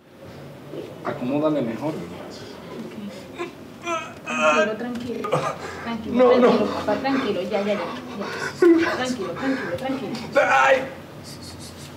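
A young man groans in pain close by.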